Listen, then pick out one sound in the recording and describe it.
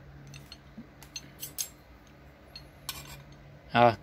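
Metal tools clink and tap together as they are handled.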